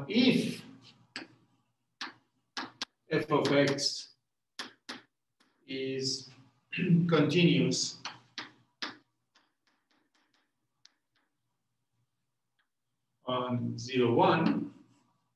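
An elderly man speaks calmly in a lecturing tone, close by.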